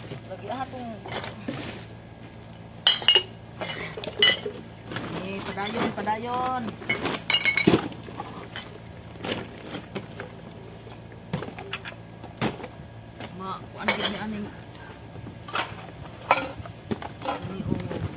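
Plastic bottles and bags crinkle and rattle as they are sorted.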